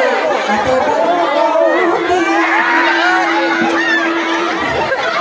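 A crowd of men and women talk and call out excitedly close by.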